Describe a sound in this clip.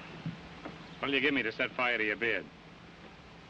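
A man speaks briefly with animation, heard close.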